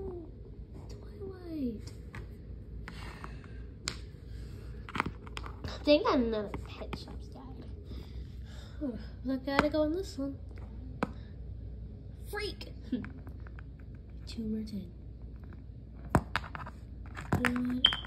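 Small plastic toys tap and click against a hard floor.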